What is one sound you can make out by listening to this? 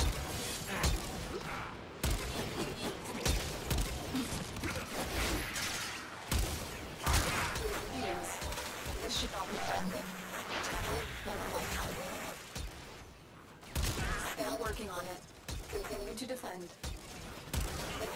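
Guns fire in quick bursts with sharp bangs.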